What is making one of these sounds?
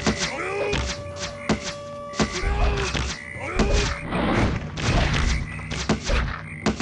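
Swords clash and strike repeatedly in a fight.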